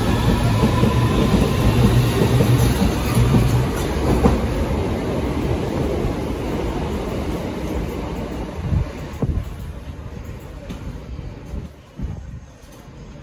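An underground train rumbles past close by and fades into the distance.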